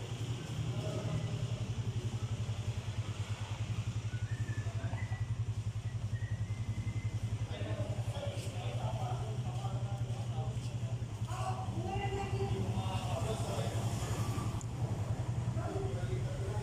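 A single-cylinder four-stroke scooter engine idles with a steady throb.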